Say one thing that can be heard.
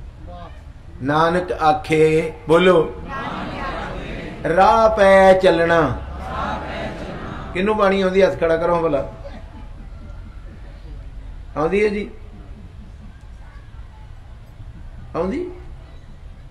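A middle-aged man preaches with animation through a microphone and loudspeakers, in bursts with pauses.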